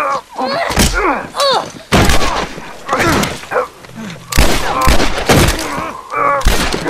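Gunshots ring out in sharp bursts.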